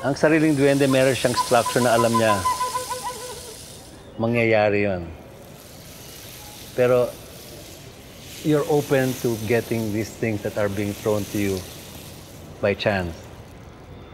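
An elderly man speaks calmly and thoughtfully, close to a microphone.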